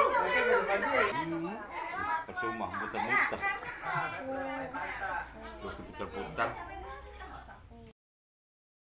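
A middle-aged woman talks close by.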